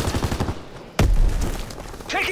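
A machine gun fires a loud burst.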